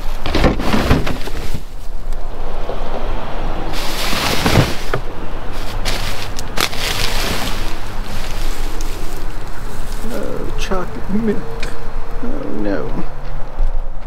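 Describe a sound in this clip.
Plastic bags rustle and crinkle as they are handled up close.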